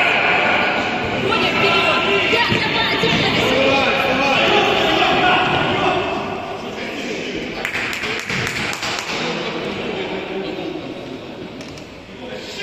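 Children shout and call out in a large echoing hall.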